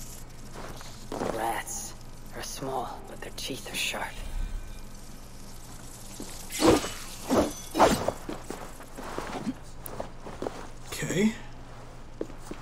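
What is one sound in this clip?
A young man talks into a close microphone in a casual, relaxed way.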